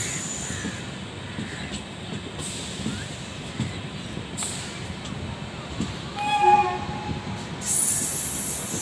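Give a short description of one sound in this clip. A train rumbles and clatters steadily along the rails.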